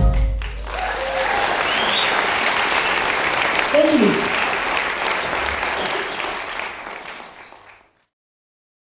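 A band plays in a large hall.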